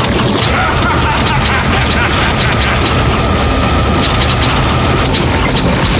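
Fiery explosions boom and roar.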